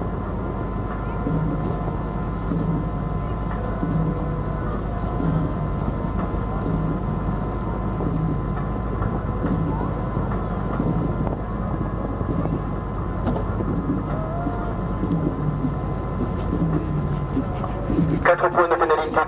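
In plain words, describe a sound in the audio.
A horse canters on sand, its hooves thudding.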